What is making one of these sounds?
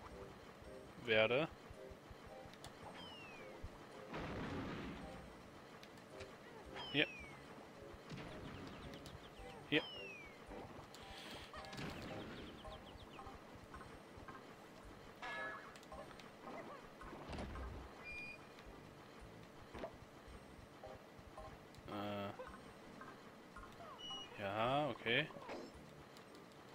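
Cartoonish game sound effects chirp, pop and whoosh now and then.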